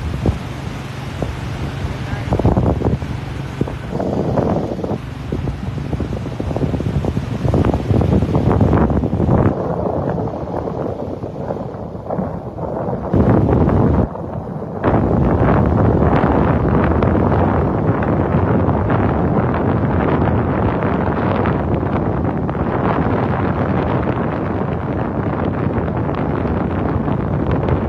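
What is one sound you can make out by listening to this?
Small waves break and wash up onto a sandy shore.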